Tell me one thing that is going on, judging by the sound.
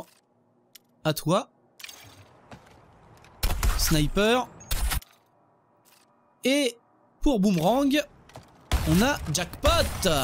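Menu sounds whoosh and chime as selections change.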